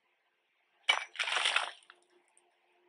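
Rock crumbles apart.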